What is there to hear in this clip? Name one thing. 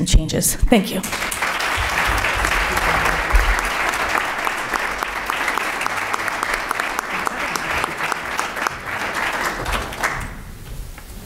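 A small group of people applauds.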